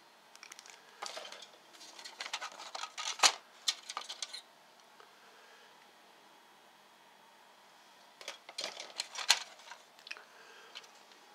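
Cardboard rustles and scrapes.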